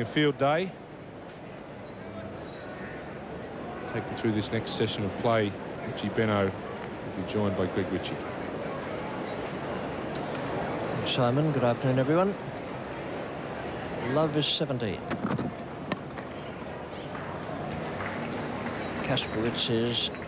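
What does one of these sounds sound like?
A crowd murmurs softly in an open stadium.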